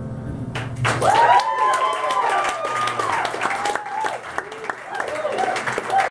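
An upright bass plays a low line.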